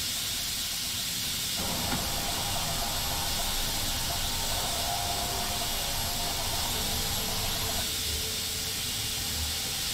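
A train engine hums and rumbles steadily as the train rolls slowly along the track.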